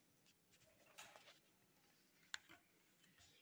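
A plastic ruler taps and slides on paper.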